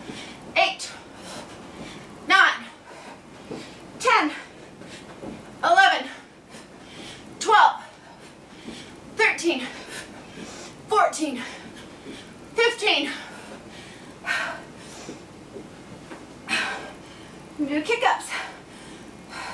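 A woman calls out, out of breath, between exercises.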